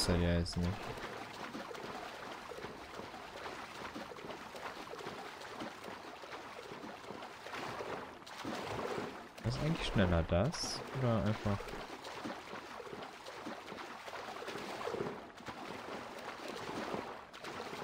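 Water splashes steadily as a swimmer strokes through the sea.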